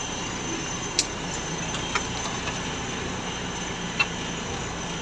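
Branches and leaves scrape and slap against a windshield.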